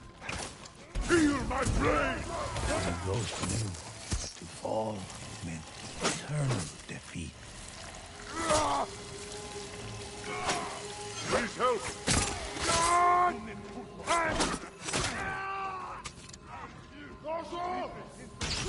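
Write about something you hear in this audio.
Swords clash and ring sharply in a fight.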